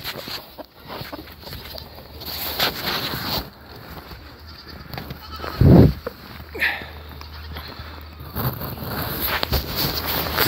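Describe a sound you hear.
Pigs grunt and snuffle close by.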